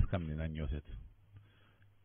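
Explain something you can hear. A man speaks briefly into a microphone over an online call.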